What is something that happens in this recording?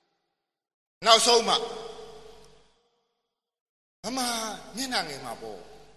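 An older man calls out words loudly, with a strong echo.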